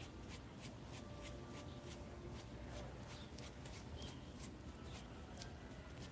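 A paintbrush strokes softly across cloth.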